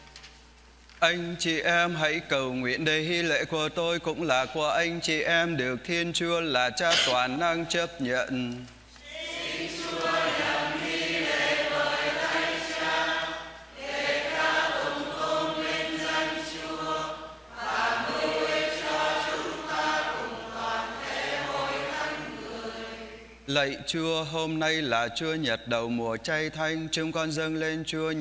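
A young man chants a prayer through a microphone in a reverberant hall.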